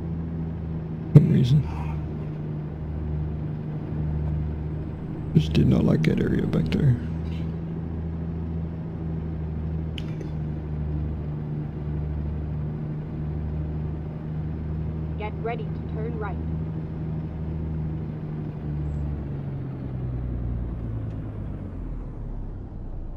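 A truck engine drones steadily, with a low rumble.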